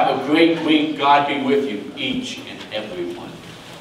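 A middle-aged man speaks with animation close by.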